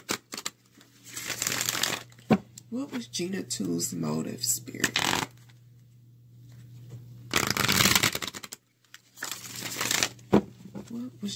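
Fingers rub and bump against the recording device up close.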